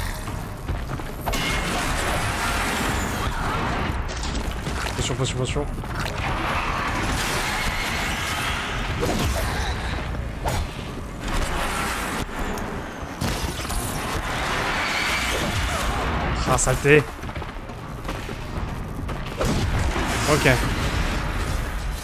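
A giant machine creature roars and clanks in battle.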